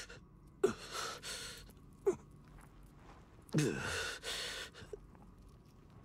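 A man speaks in a low, weary voice close by.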